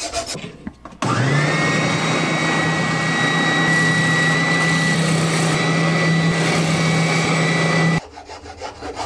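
A sanding machine whirs loudly and steadily.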